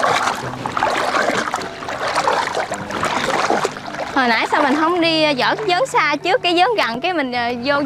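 Water splashes as a person wades through it.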